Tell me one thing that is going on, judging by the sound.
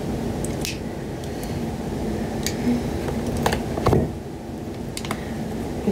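Food crunches and clicks as a young woman eats.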